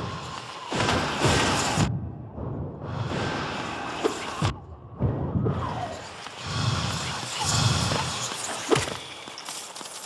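Sword slashes and impact bursts crash loudly in quick succession.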